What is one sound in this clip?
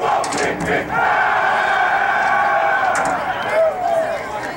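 A group of young women shout together in a loud chant.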